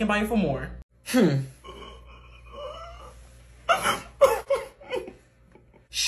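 A young woman cries and sobs theatrically.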